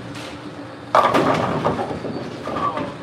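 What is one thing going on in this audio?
Bowling pins crash loudly in a large echoing hall.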